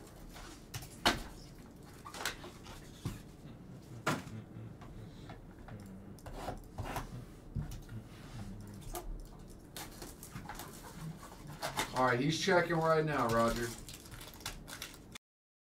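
Cardboard and card packs tap and rustle as they are handled.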